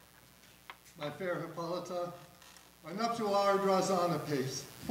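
A man speaks loudly on a stage, heard from a distance in a large hall.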